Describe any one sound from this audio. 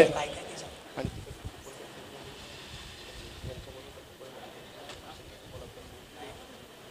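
A man speaks briefly into a microphone over a loudspeaker.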